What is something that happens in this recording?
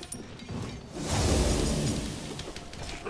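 A magic spell bursts with a loud whooshing rumble.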